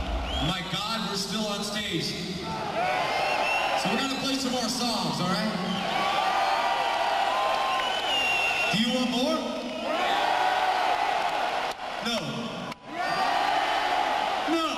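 A rock band plays loudly in a large echoing arena.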